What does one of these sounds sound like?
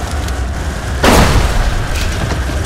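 An explosion bursts with a loud crackling blast.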